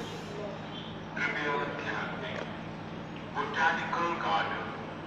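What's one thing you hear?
A train idles at a platform with a steady low hum.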